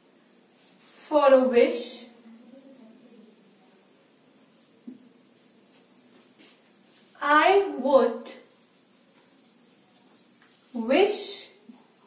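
A young woman speaks clearly in short phrases, close by.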